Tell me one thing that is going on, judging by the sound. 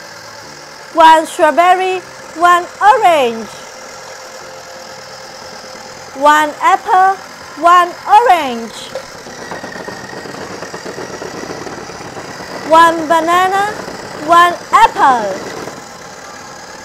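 A toy blender plays short, cheerful electronic tunes in bursts.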